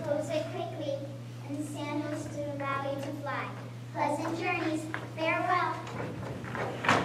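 A young woman speaks with feeling, heard from across a hall.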